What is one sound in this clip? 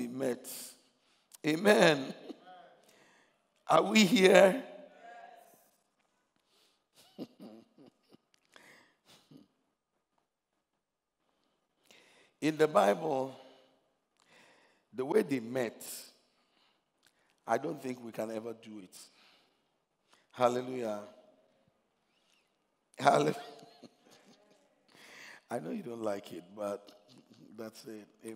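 A man preaches with animation through a microphone, in short bursts with pauses.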